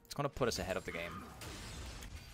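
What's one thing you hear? A young man speaks with animation into a microphone.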